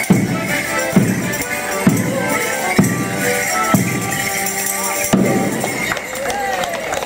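A folk band plays a lively tune outdoors.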